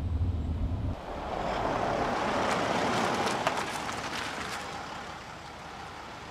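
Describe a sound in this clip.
A car drives up and rolls to a stop on the street.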